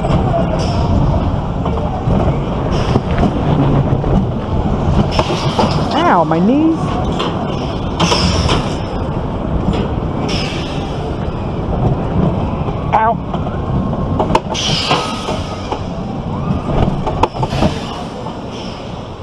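A roller coaster car rattles and rumbles loudly along its track.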